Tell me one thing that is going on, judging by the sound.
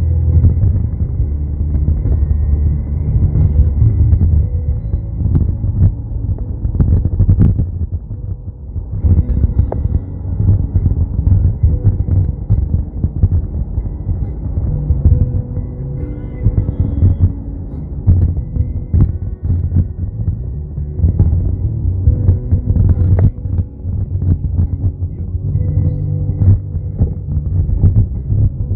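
A car engine hums steadily, heard from inside the cabin.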